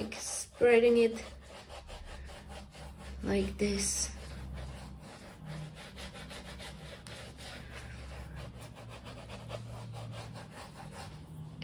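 A sponge dabs softly and repeatedly against a canvas.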